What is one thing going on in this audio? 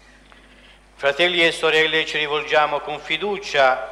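A group of men sing together in a large echoing hall.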